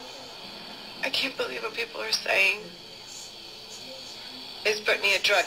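A young woman speaks quietly through a small loudspeaker.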